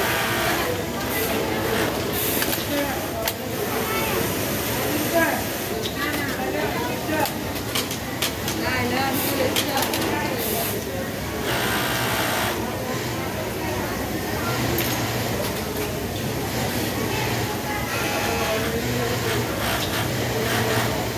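A sewing machine whirs in short bursts.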